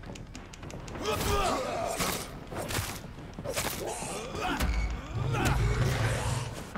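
A blade swishes and strikes in a fight.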